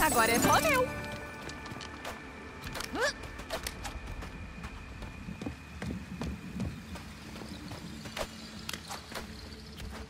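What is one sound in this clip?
Quick light footsteps patter on the ground.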